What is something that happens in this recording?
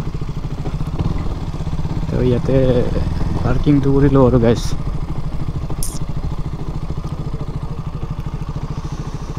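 A motorcycle engine idles with a steady low putter close by.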